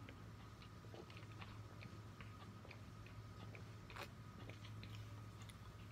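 A young man gulps a drink from a can.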